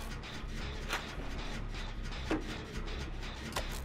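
A generator crackles with sparking noises.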